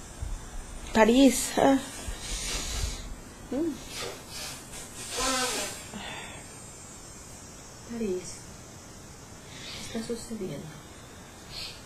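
A young woman speaks softly and slowly, close by.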